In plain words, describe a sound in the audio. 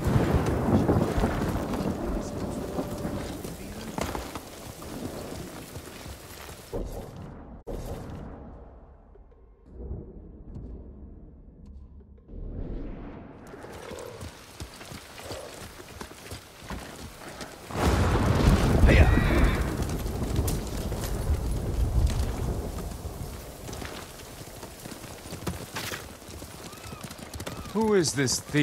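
Horse hooves clop steadily on a dirt path.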